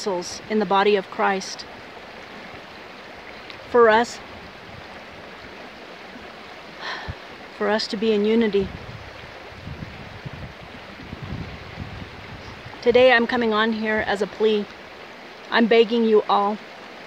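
A woman speaks close to a phone microphone in short bursts, with pauses.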